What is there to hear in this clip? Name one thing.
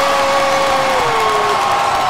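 A woman shouts with excitement close by.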